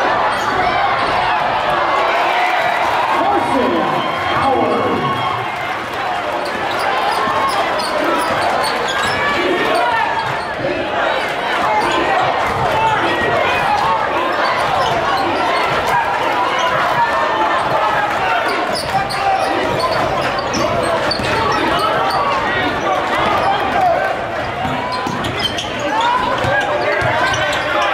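A crowd of spectators murmurs and cheers in a large echoing gym.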